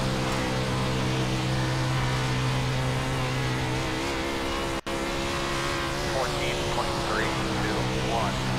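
A race car engine drones steadily at high revs.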